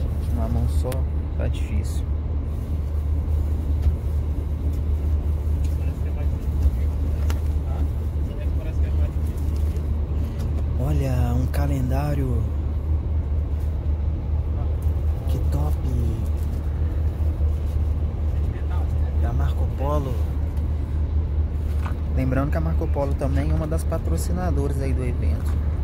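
A bus engine hums low and steady.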